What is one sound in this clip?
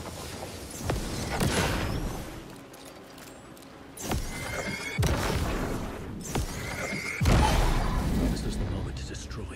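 Gunshots bang loudly, one after another, with a rumbling echo.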